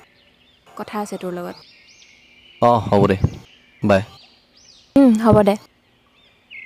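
A young woman talks on a phone close by.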